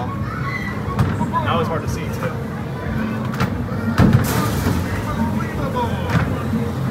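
A basketball thumps against an arcade hoop's backboard and rim.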